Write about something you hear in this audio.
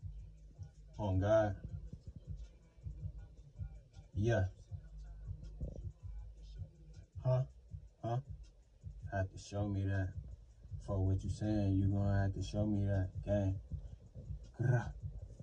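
A man speaks close by, in short bursts.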